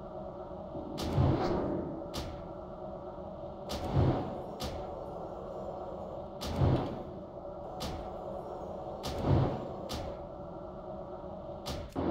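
A magic spell whooshes and bursts with a crack, again and again at a steady pace.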